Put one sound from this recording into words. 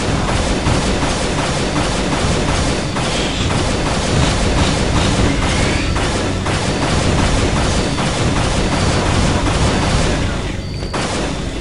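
An energy gun fires bolts in rapid, buzzing blasts.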